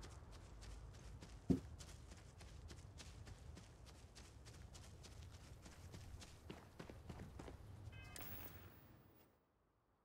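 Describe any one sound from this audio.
Footsteps tread quickly through grass.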